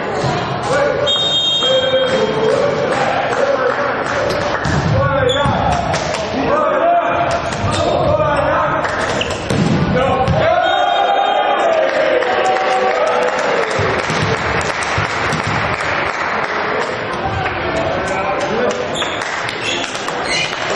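Sports shoes squeak on a hard indoor floor.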